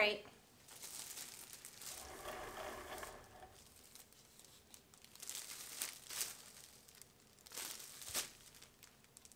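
A plastic sheet crinkles and rustles as it is handled.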